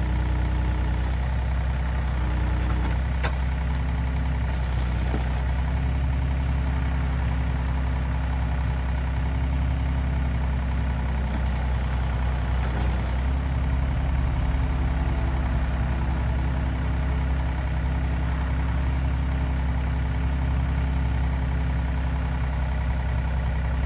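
A small excavator's diesel engine rumbles steadily close by.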